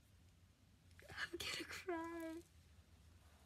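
A young girl laughs and squeals loudly, close by.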